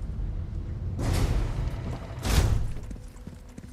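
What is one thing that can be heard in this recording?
A metal gate clanks open loudly.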